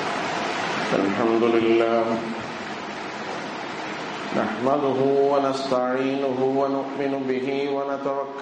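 A man chants in a drawn-out voice through a microphone.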